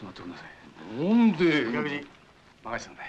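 A young man speaks up close.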